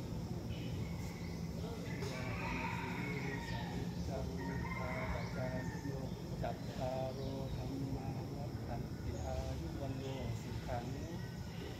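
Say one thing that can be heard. A man chants softly in a low, steady voice nearby.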